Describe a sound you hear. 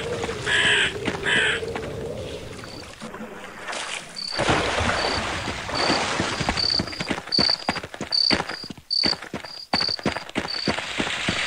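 Footsteps thud steadily over soft ground.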